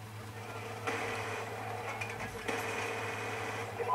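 Gunshots from a video game crack through a television speaker.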